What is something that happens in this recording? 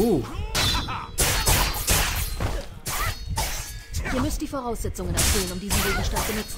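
Blades swish and strike in a fight.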